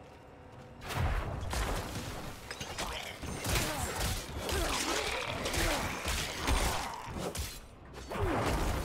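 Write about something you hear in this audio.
Skeletons clatter and crunch as they are struck in combat.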